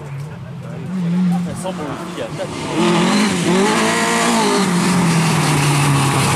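A second rally car engine approaches and roars past, revving loudly.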